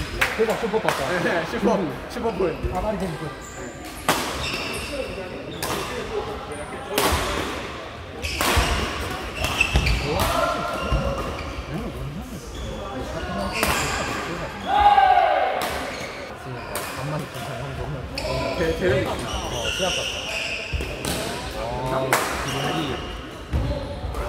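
Rackets smack a shuttlecock back and forth in sharp hits.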